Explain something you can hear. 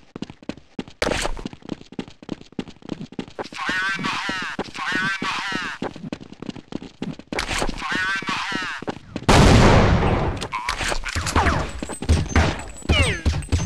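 Footsteps tap quickly on stone paving.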